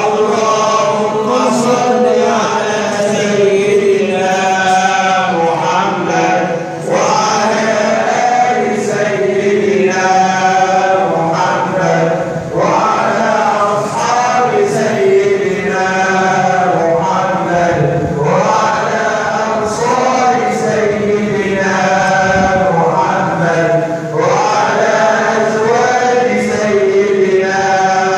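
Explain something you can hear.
A group of men chant together in unison in a large echoing hall.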